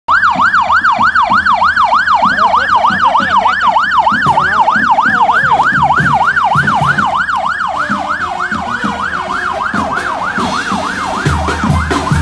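A police siren wails in a fast, steady rising and falling yelp close by.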